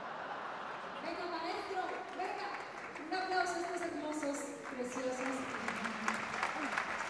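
Young women sing a melody together through microphones.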